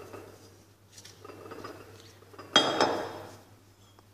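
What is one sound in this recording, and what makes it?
A plastic bowl knocks down onto a hard surface.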